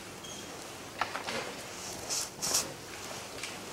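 Paper sheets rustle close by.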